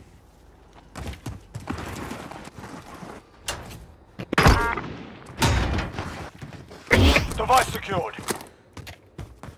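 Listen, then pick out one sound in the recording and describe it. Gunshots crack in short, quick bursts.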